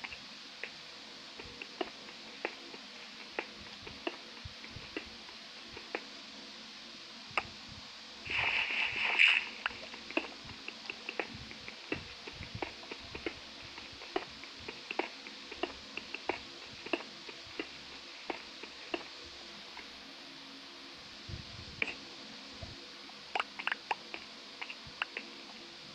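Pickaxe blows chip at stone blocks with short, dry clicks.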